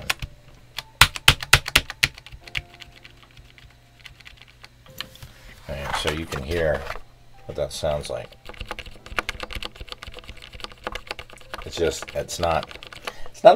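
Keyboard keys click and clack under typing fingers.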